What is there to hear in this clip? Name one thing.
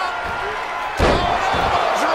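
A body slams heavily onto a mat.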